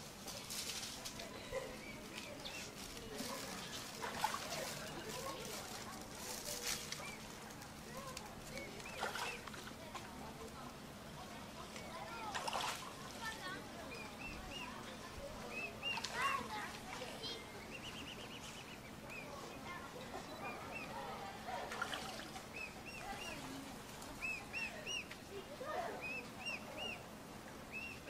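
Swans paddle and splash softly in calm water.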